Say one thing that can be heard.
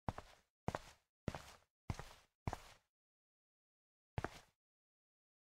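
Footsteps thud on a hard surface.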